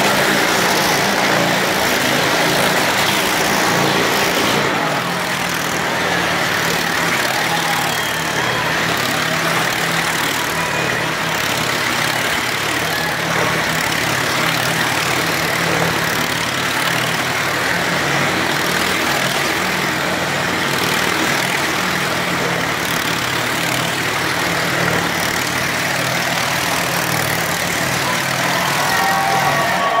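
A motorcycle engine roars as the bike circles at speed on a wooden wall, echoing round the drum.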